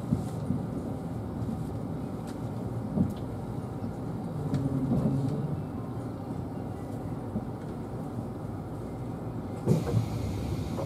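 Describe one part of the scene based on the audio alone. A train rumbles slowly along a station platform, heard from inside a carriage.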